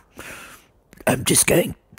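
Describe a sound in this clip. An old man speaks in a deep, gravelly voice, close up.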